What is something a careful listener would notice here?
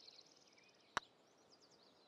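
A putter taps a golf ball once.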